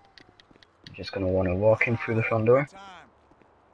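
A man speaks gruffly.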